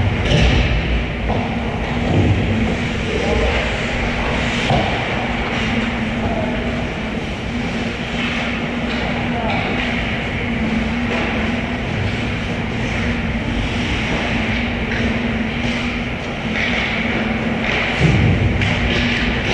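Skate blades scrape and hiss across the ice in a large echoing rink.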